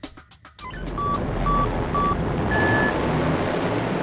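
A short electronic beep sounds three times, then a higher beep.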